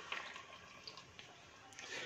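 Liquid pours into a pot.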